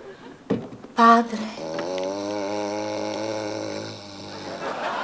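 A man sings a long, wavering note.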